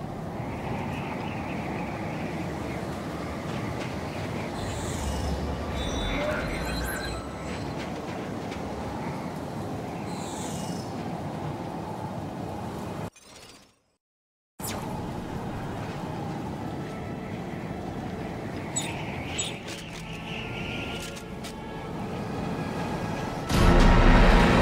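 Strong wind howls through a blizzard.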